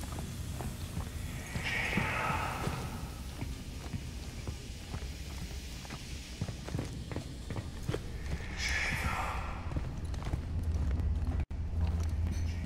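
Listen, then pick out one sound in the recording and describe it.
Footsteps clank slowly on a metal walkway.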